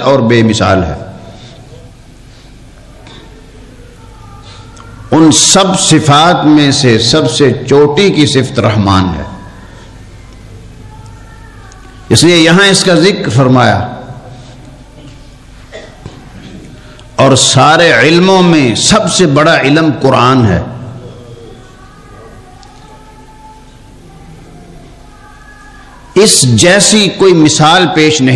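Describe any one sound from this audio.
An elderly man preaches loudly into a microphone in bursts, with an echoing sound.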